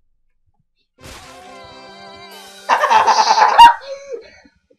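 A short cheerful victory jingle plays.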